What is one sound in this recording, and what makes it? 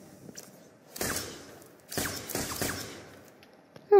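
Gunshots ring out in quick bursts, close by.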